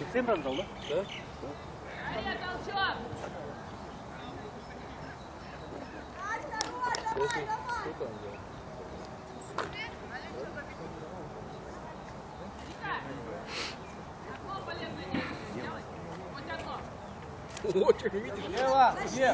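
Young women shout and call to each other outdoors in an open field.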